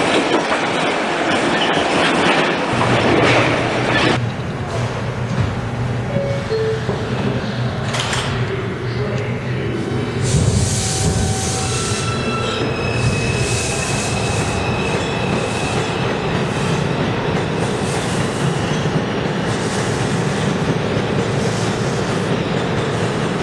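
A subway train rumbles loudly along the platform.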